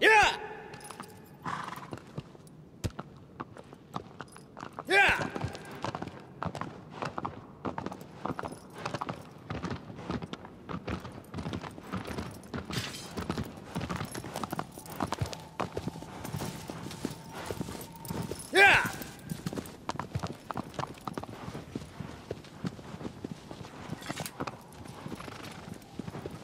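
A horse's hooves clop steadily on stone and grass.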